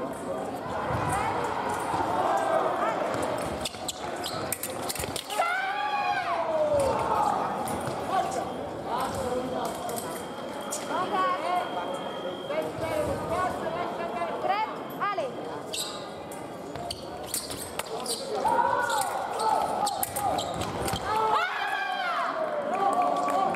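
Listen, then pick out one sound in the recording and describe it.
Shoes squeak sharply on a hard floor as fencers lunge and step.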